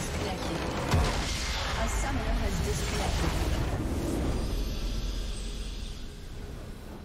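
A deep explosion booms and slowly fades away.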